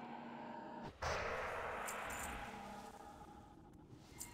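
A magical shimmering whoosh swells up and slowly fades.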